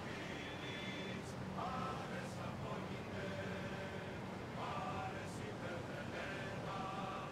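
A group of men sing together, faint and distant.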